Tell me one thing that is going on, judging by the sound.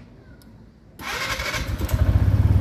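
A scooter engine starts up with a short whirr.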